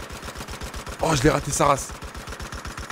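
A heavy machine gun fires in a rapid burst.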